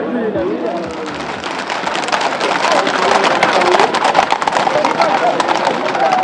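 Horses' hooves clatter on pavement.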